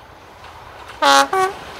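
A train horn sounds two loud, sharp blasts close by.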